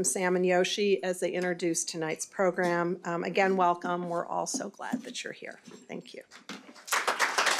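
A middle-aged woman speaks into a microphone in a calm, warm voice.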